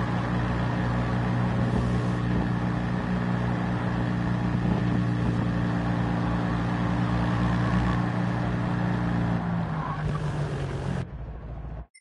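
A small car engine drones steadily at high revs.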